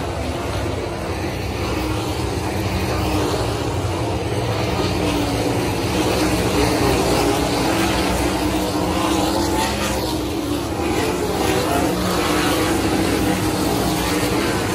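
Loud racing car engines roar steadily around a dirt track outdoors.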